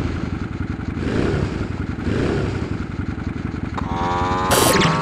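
A scooter engine buzzes steadily and rises in pitch as it speeds up.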